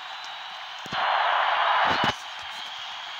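A stadium crowd cheers loudly.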